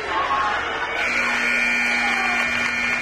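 A loud buzzer blares steadily.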